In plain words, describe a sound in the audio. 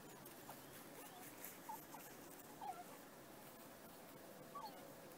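Two dogs scamper through grass.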